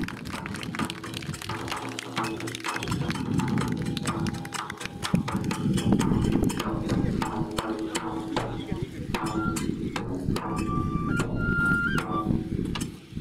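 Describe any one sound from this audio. A drum beats steadily in a lively rhythm.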